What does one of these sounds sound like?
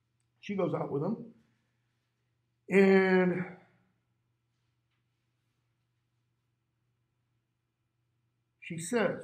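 A middle-aged man speaks calmly through a microphone, in short bursts with pauses.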